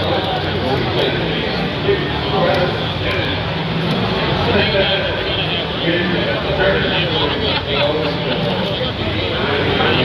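Game controller buttons click rapidly.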